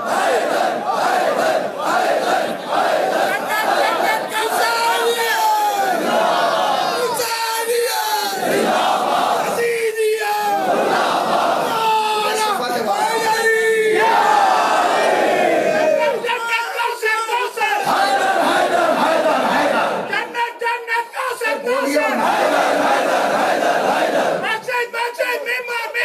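Men beat their chests in a steady rhythm.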